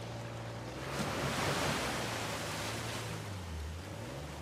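Water splashes and rushes under the tyres.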